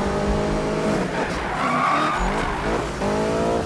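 Tyres screech as a sports car drifts.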